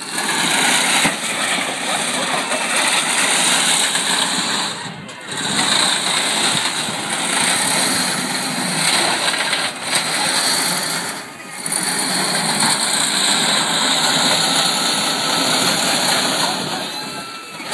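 Robot motors whine and treads grind on a hard floor.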